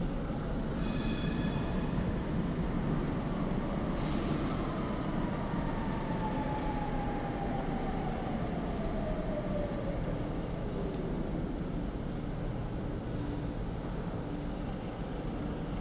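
A train rumbles as it slowly approaches along the tracks.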